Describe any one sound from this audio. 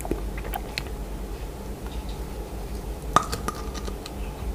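A young man bites into a crunchy coated strawberry close to a microphone.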